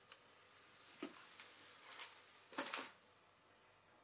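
Paper kindling crackles as it catches fire.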